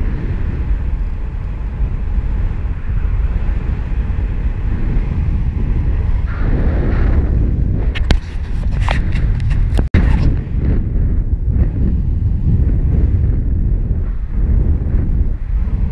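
Wind rushes loudly past the microphone in flight, outdoors high in the open air.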